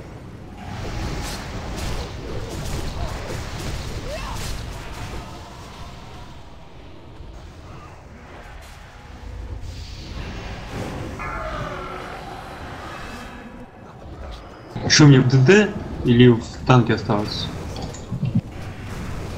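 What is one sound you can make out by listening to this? Spells and weapons clash with crackling bursts in a game battle.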